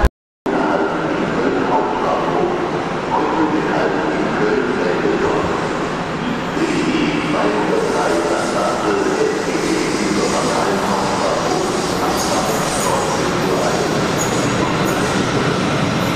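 A train rolls into the station with a steady rumble.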